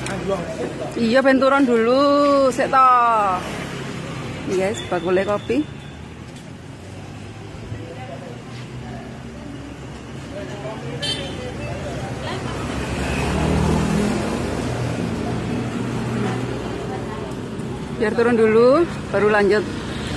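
Young men talk loudly and with animation close by.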